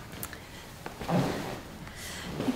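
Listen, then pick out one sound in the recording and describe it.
A leather sofa creaks and thumps.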